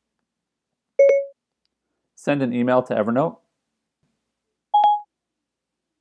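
A phone gives short electronic chimes.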